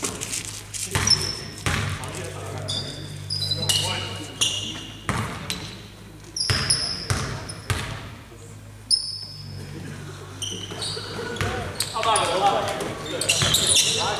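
Sneakers squeak sharply on the gym floor.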